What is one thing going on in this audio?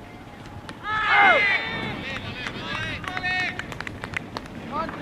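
Several men on a field shout out loudly together.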